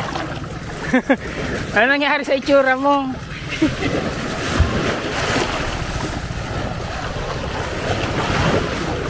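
Small waves wash and lap onto the shore.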